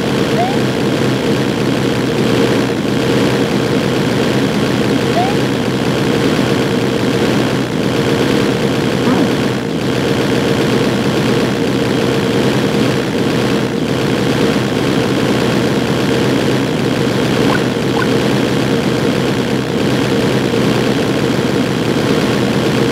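Busy retro video game music plays steadily.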